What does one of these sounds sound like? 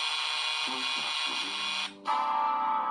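A loud electronic game tone buzzes steadily, then cuts off.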